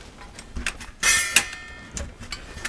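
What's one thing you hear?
Thin metal plates clink and rattle as they are handled.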